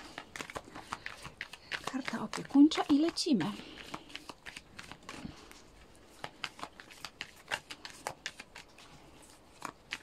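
Playing cards flick and rustle as they are shuffled by hand.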